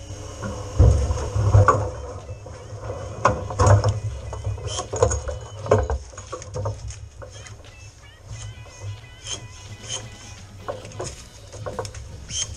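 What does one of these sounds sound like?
Pruning shears snip through twigs.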